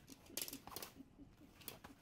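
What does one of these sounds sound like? Small dogs growl while play-wrestling.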